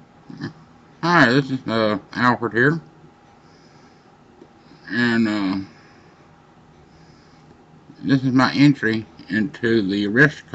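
A middle-aged man speaks calmly and close to the microphone, pausing now and then.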